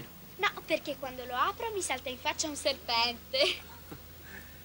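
A young girl talks with animation.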